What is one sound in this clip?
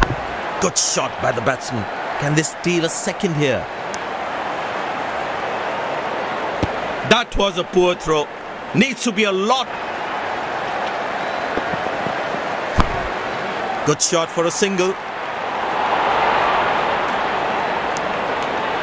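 A large crowd murmurs and cheers steadily.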